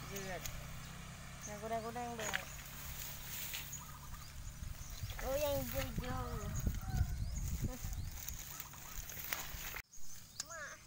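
A young girl talks close by.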